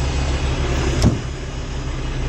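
A truck door thuds shut.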